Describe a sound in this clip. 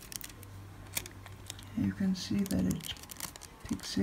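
Thin foil crinkles and rustles between fingers.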